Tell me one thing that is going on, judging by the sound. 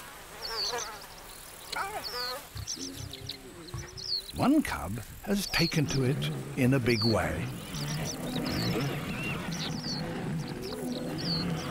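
Lion cubs growl and mewl while playing.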